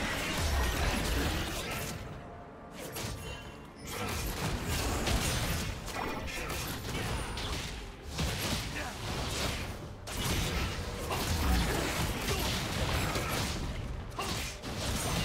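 Game spell effects burst and clash in rapid bursts.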